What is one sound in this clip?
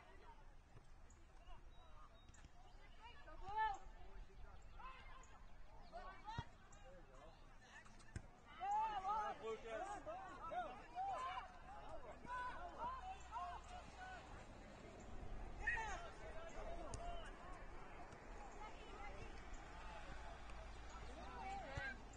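Spectators shout and cheer from a short distance outdoors.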